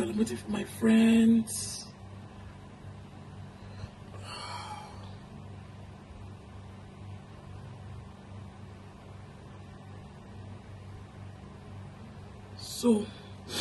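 A makeup brush brushes softly against skin.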